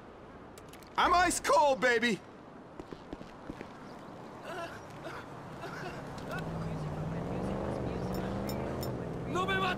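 An elderly man speaks with animation and enthusiasm, close by.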